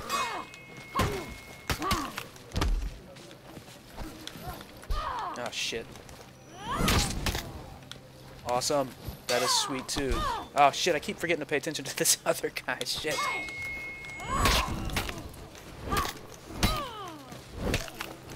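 Swords clash and clang in quick blows.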